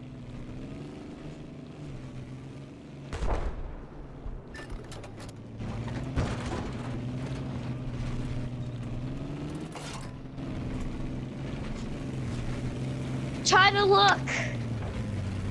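Tank tracks clank and rattle over the ground.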